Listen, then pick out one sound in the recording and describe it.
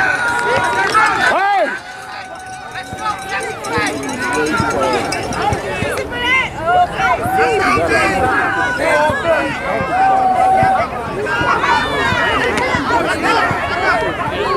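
A crowd of people shout and cheer outdoors.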